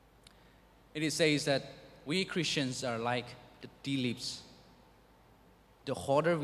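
A young man speaks calmly into a microphone, heard through a loudspeaker.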